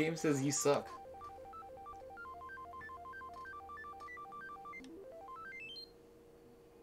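An arcade machine beeps in a rising tune as a score counts up.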